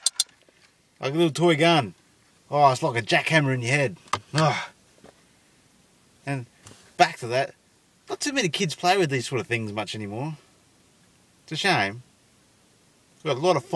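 A young man talks calmly and close by, in short bursts with pauses.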